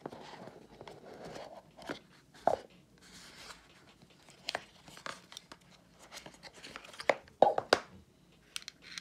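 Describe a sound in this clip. Cardboard box parts rub and knock as a box is opened.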